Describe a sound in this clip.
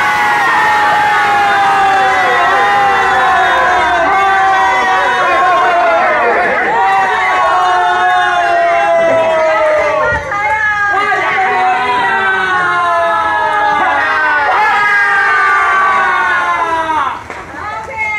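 A group of men and women shout and cheer loudly together, close by.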